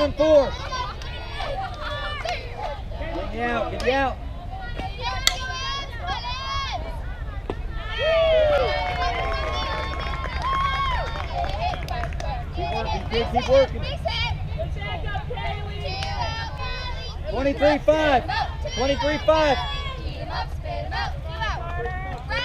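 Young women shout and cheer from nearby.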